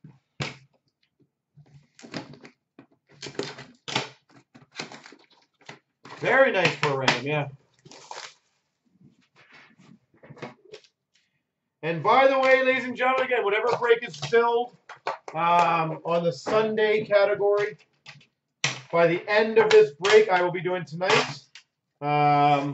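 Cardboard boxes knock and slide as hands handle them.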